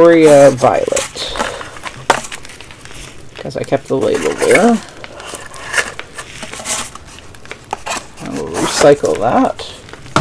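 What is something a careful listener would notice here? Cardboard packaging rustles and scrapes.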